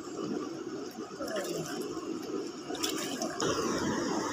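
Water splashes in a river.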